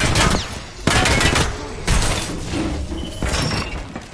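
An electric charge crackles and hums.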